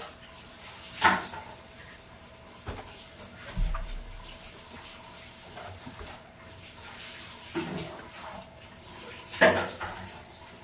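Plastic clatters and knocks sharply nearby.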